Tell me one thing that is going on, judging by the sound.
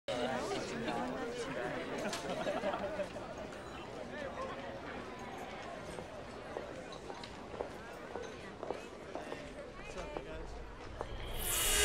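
Many young people chatter at once in a busy, echoing hall.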